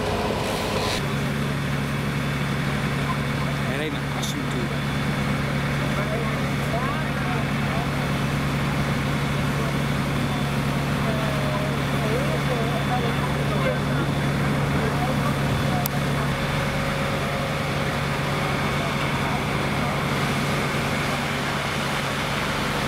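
A fire engine's pump runs with a steady low drone.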